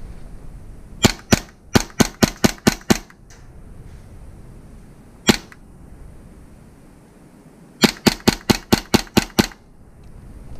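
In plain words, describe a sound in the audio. An airsoft gun fires rapid bursts of sharp shots.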